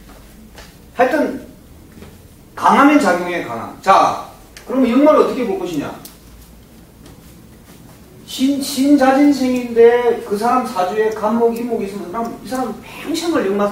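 A middle-aged man speaks calmly, lecturing with pauses.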